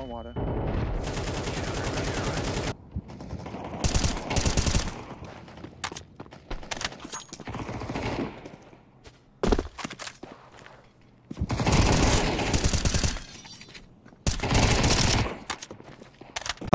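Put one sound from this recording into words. Gunfire from a game rings out in quick bursts.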